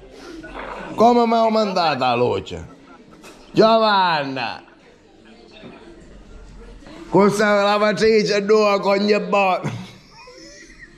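A middle-aged man talks with animation close to a phone's microphone.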